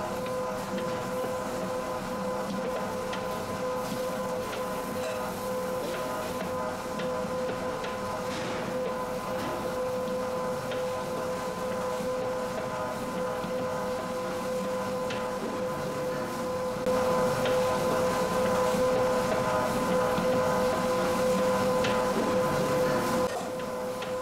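A dough mixer hums steadily with a whirring motor.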